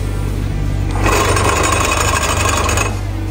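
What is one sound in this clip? A plate compactor pounds loudly against the ground.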